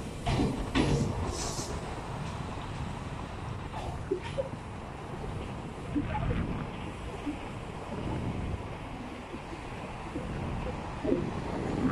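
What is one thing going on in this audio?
A train pulls away and fades into the distance.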